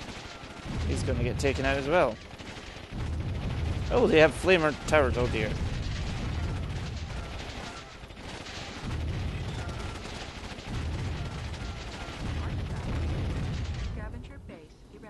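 Explosions boom and rumble in a heavy, continuous barrage.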